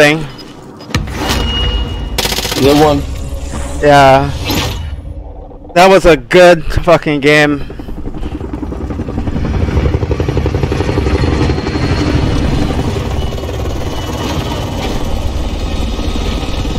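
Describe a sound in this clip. A helicopter rumbles overhead.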